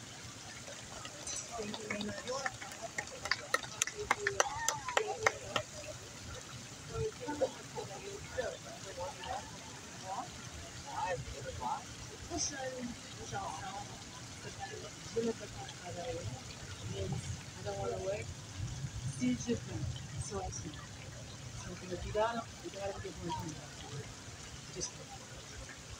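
A woman speaks into a microphone outdoors, with animation.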